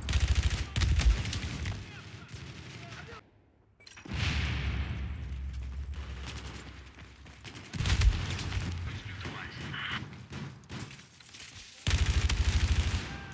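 An automatic rifle fires rapid bursts at close range.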